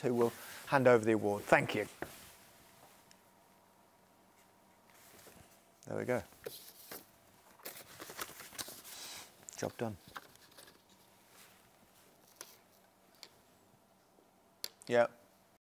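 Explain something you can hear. A middle-aged man speaks calmly into a close microphone, in short bursts with long pauses.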